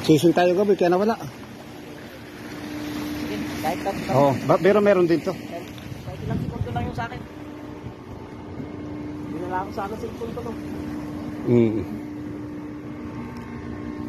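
Water splashes and rushes along the side of a moving boat.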